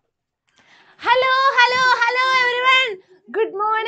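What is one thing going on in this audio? A young woman sings out brightly and cheerfully close by.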